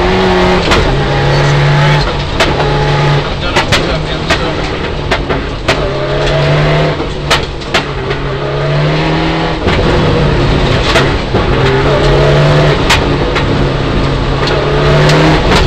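Gravel and stones rattle against the underside of a car.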